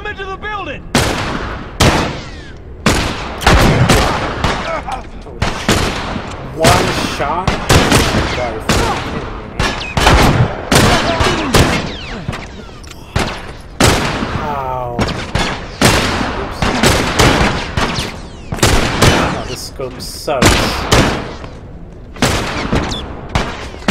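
Gunshots ring out in quick, repeated bursts with echoing booms.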